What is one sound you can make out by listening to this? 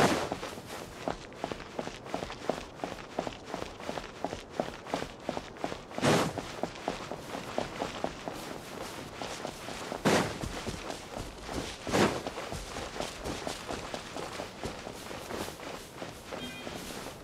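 Quick footsteps run over rock and dirt.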